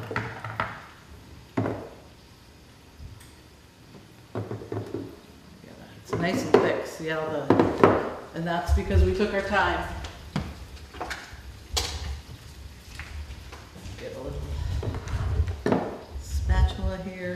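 Thick liquid pours from a blender jar into a glass.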